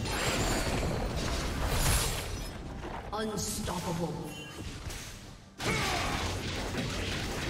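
Fighting game spell effects whoosh and crackle in quick bursts.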